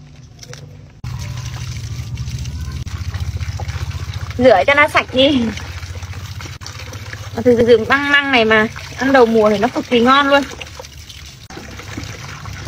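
Water sloshes and splashes in a metal bowl as food is washed by hand.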